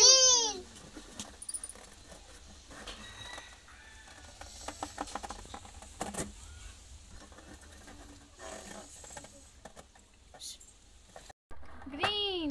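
Rubber balloons squeak as a boy handles them.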